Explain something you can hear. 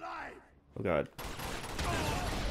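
A gunshot bangs.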